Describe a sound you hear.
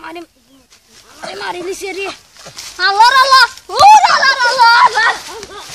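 A boy groans and cries out in pain.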